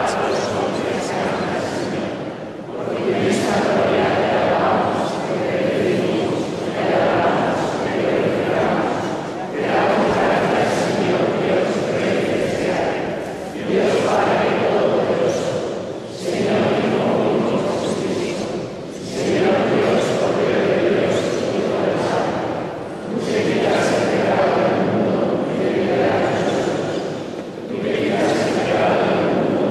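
An adult man speaks steadily in phrases through a microphone, echoing in a large reverberant hall.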